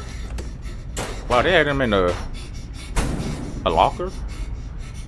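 A heavy metal locker scrapes and screeches as it is pushed across the floor.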